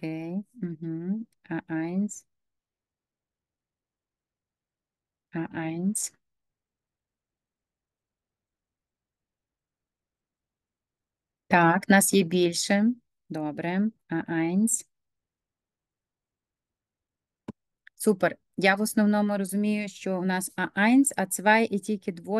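A woman speaks calmly into a microphone, heard through an online call, with pauses between phrases.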